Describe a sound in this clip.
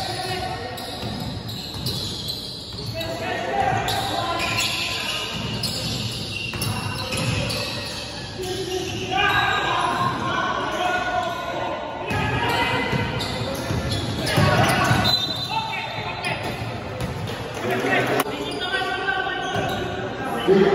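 Young men shout to each other in an echoing gym.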